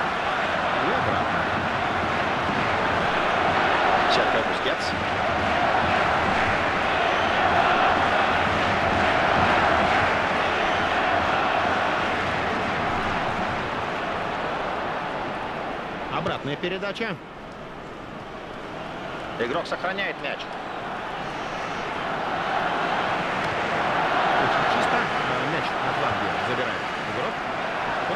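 A stadium crowd roars steadily, rising and falling.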